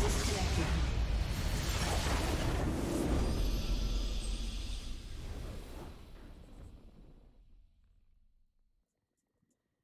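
A game's victory fanfare swells loudly and then fades away.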